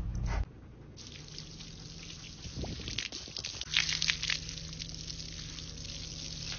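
Water hisses as it sprays from a hose nozzle.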